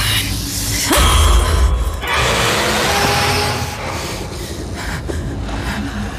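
A young woman breathes heavily and shakily, close by.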